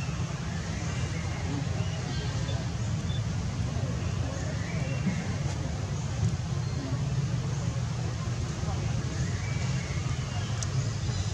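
A newborn macaque cries with thin, high squeals.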